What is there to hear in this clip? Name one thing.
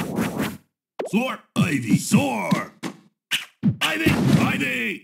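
A cartoon creature roars and cries out several times.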